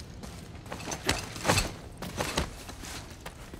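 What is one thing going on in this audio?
Hands and boots scrape against rock while climbing.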